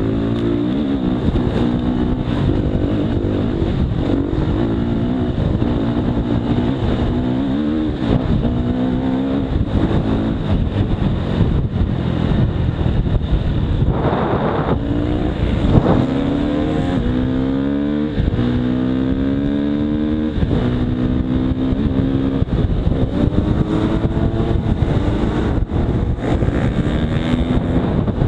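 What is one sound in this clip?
A dirt bike engine revs up and down close by, rising and falling in pitch.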